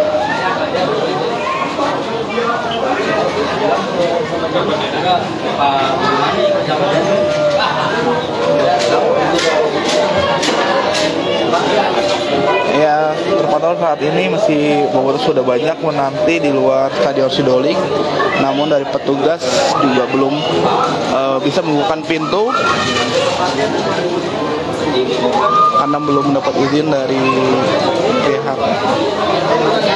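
A crowd of young men chatters loudly in an echoing hall.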